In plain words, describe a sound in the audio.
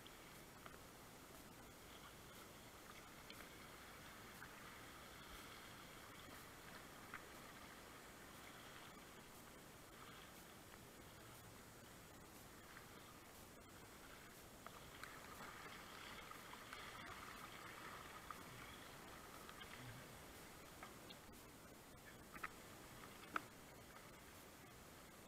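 River water rushes and splashes around a kayak, heard close up.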